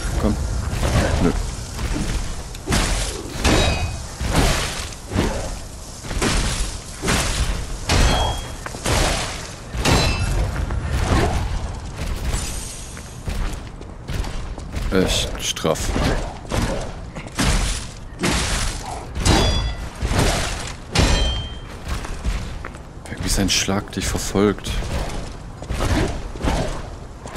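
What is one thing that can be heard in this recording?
Heavy weapon blows strike and crunch repeatedly.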